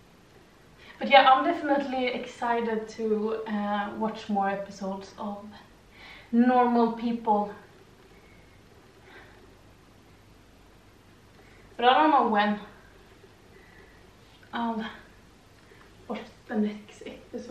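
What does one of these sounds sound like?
A young woman speaks calmly and clearly into a nearby microphone.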